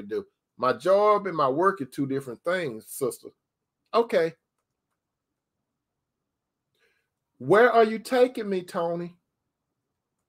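An older man speaks calmly into a microphone over an online call, pausing between phrases.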